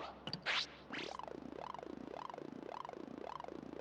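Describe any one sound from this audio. A game battle wheel spins with a wavering, rising and falling whir.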